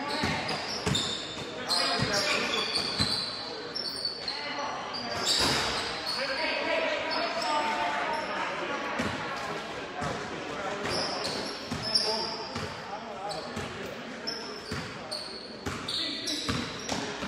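A crowd of spectators murmurs and calls out in an echoing hall.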